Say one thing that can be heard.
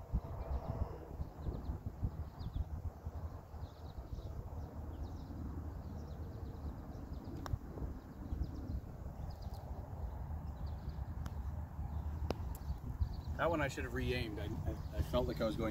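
Wind blusters across an outdoor microphone.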